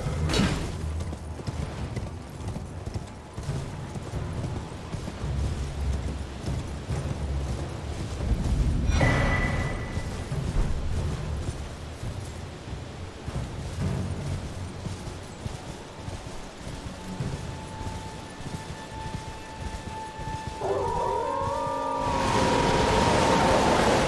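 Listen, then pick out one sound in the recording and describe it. A horse gallops with heavy, rumbling hoofbeats.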